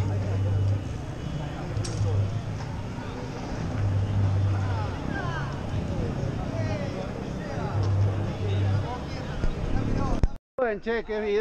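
Bicycles roll past on a paved street.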